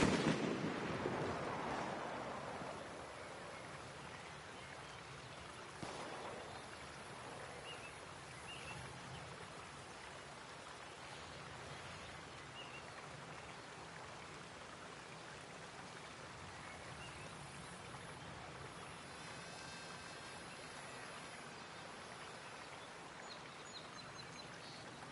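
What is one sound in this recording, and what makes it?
A shallow stream trickles and babbles steadily.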